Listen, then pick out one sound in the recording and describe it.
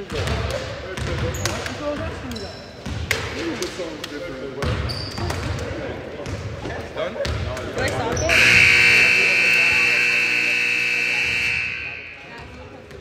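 Men talk and call out in a large echoing gym.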